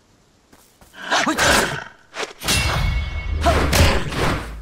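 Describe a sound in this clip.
A sword slashes and strikes in a fight.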